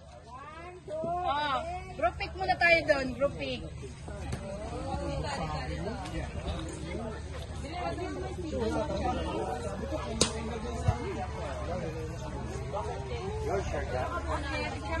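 Several people chatter nearby outdoors.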